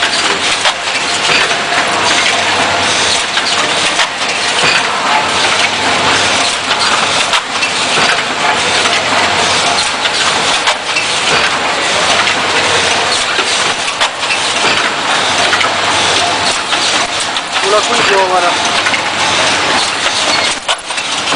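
Metal parts of a machine click and knock in a regular rhythm.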